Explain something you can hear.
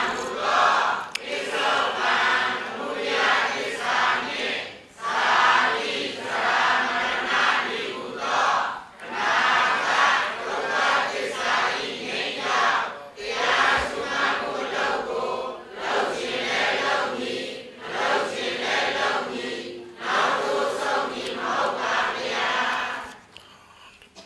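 A man speaks calmly and steadily into a microphone, heard through a loudspeaker.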